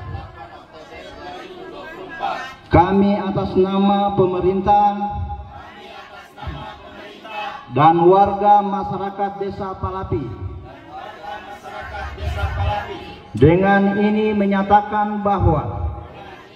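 A group of men recite together in unison.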